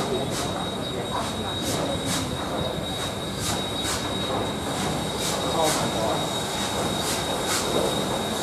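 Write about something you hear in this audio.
A steam locomotive's engine rumbles low and steady.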